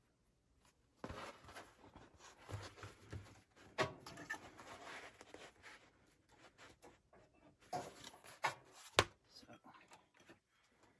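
Hands slide and rustle material across a table.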